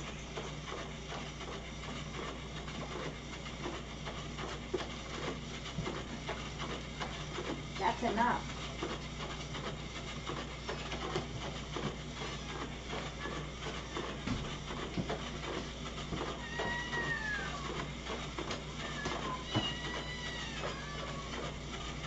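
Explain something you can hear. Dishes and objects clink and clatter on a counter.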